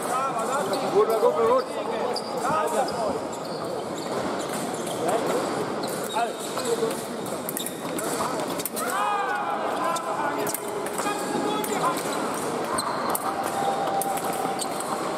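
Fencers' feet stamp and shuffle on the floor.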